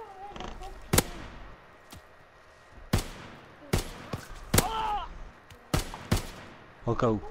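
Gunshots crack sharply, one after another.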